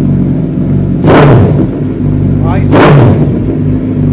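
A motorcycle engine revs sharply twice.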